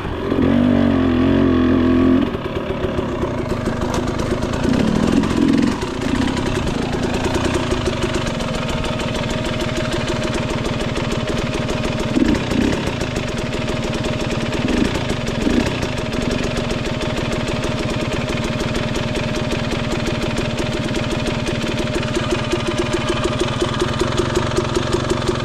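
A dirt bike engine revs loudly and then idles with a steady putter.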